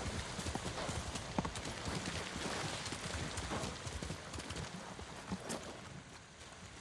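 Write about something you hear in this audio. A horse's hooves thud quickly on the ground.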